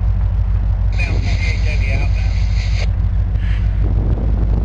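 A train horn blares loudly from a distance.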